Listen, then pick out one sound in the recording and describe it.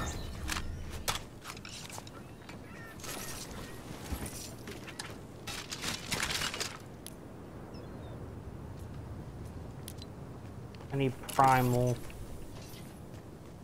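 Items are picked up with short clicking chimes.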